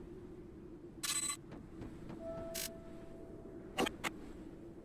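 Electronic game sound effects chime and zap in short bursts.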